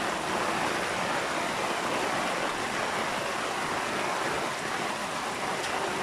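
Muddy water rushes and churns close by.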